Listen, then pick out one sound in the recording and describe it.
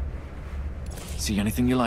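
An interface opens with a short bright chime.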